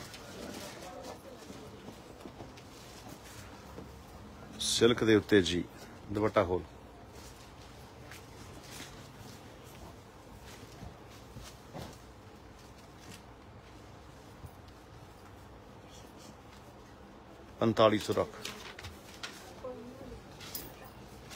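Fabric rustles softly as hands unfold and spread it.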